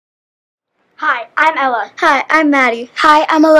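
Young girls speak together in unison, close to a microphone.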